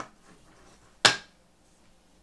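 A stamp pad lid clicks open on a table.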